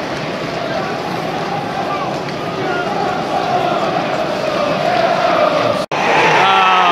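A large crowd roars and murmurs in a stadium.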